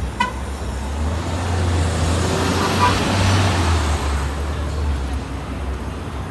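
A bus engine rumbles loudly as a bus pulls up to the curb.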